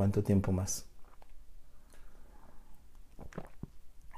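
A man sips a drink from a mug.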